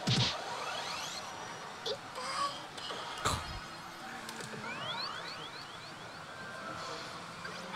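Slot machine reels spin and stop with clicks.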